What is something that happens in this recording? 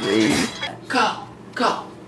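A woman shouts and laughs close by.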